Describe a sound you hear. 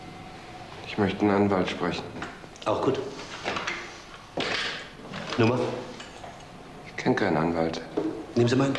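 A middle-aged man speaks.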